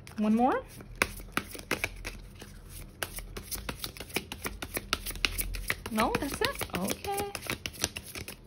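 Cards shuffle with quick riffling clicks.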